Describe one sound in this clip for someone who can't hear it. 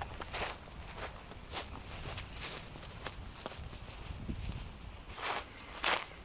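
Footsteps crunch on dry grass, coming closer.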